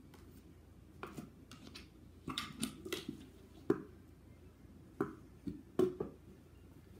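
A treat jar rattles and clicks.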